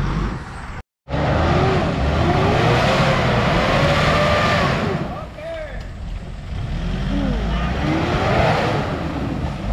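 Tyres spin and churn through thick mud.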